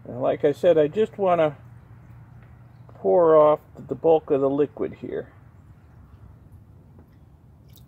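Liquid pours and trickles through a funnel.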